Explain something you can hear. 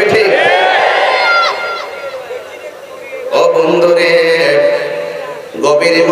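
A man chants loudly in a sung voice through a microphone and loudspeakers, with echo.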